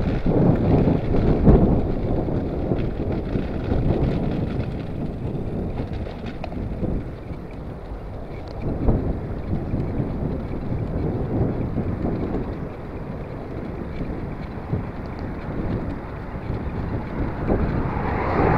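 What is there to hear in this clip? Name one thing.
Wind rushes loudly past, blustery and low.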